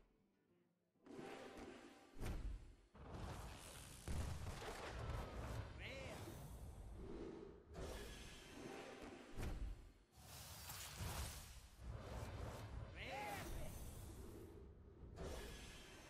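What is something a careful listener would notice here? Magical whooshes and shimmering bursts ring out.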